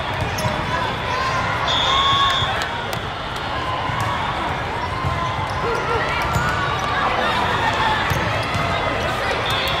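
A volleyball thumps off a player's arms.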